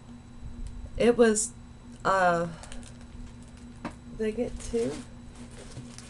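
An older woman speaks close by, in short bursts.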